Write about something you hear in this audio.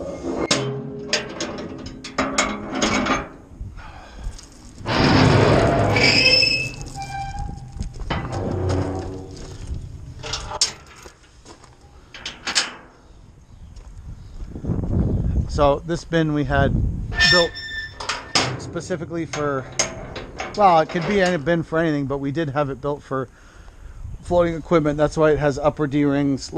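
Metal latches clank and rattle on a steel container.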